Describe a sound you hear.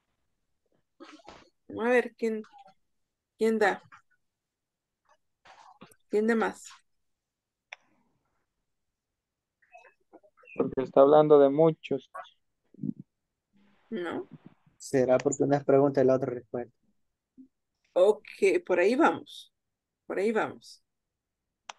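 A woman speaks in short, clear phrases over an online call.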